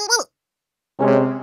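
Trombones play a short brassy note.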